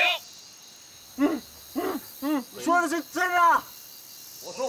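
A young man speaks tensely at close range.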